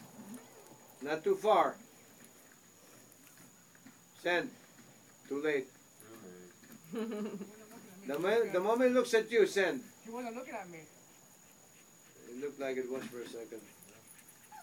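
A man calls out commands to a dog in short, loud bursts outdoors.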